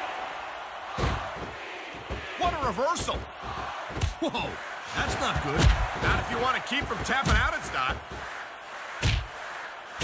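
Bodies thud heavily onto a wrestling ring mat.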